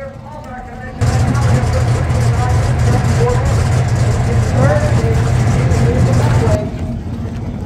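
A race car engine roars loudly from inside the car.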